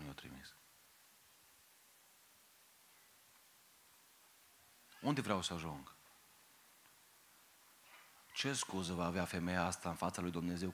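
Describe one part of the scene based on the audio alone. A man speaks with emphasis into a microphone, heard through loudspeakers, with long pauses.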